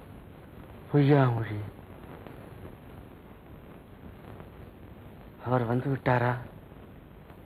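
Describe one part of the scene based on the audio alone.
A man speaks weakly and slowly nearby.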